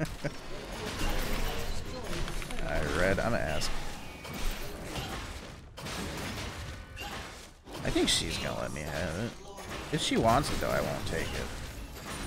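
Magic spells burst and whoosh.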